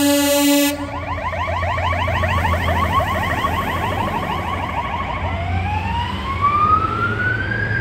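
A fire engine's heavy engine rumbles past close by.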